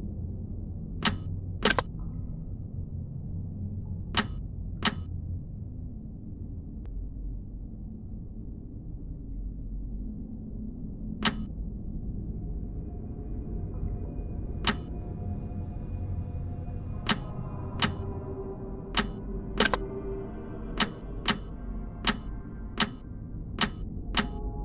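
Game clicks sound as puzzle pieces rotate into place.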